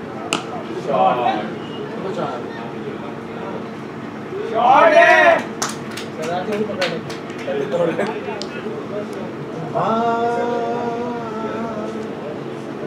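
Men call out and shout across an open field at a distance.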